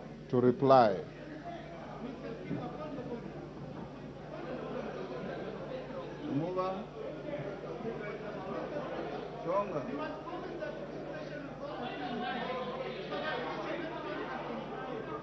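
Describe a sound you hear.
Many people murmur and chatter in a large echoing chamber.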